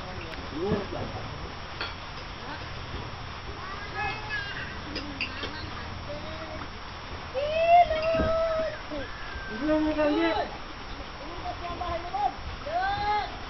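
A person wades and splashes through water.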